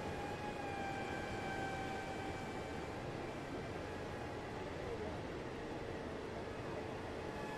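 A train's engine hums steadily as it rolls slowly along.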